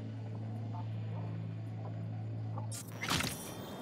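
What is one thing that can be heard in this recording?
A steady low electronic hum drones, then cuts off.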